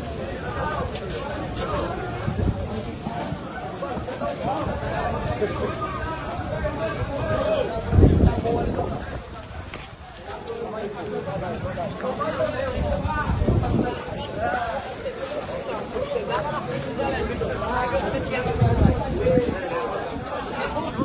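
A large crowd of men chants loudly outdoors as it marches.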